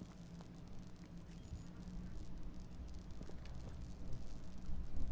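Footsteps tread slowly across a hard, wet floor.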